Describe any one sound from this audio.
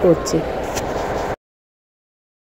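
A teenage girl speaks calmly close by.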